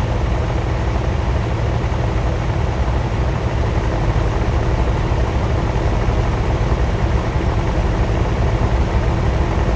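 Car engines idle with a steady low rumble.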